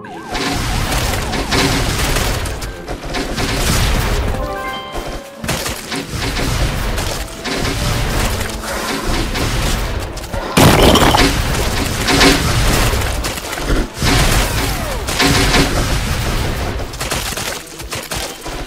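Cartoon plants pelt zombies with quick popping and thumping hits.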